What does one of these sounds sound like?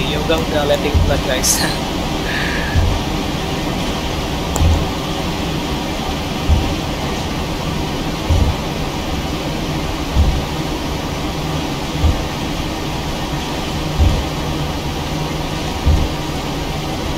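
Aircraft wheels thump at a steady pace over runway joints.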